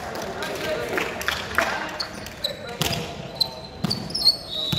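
A volleyball smacks off hands and arms.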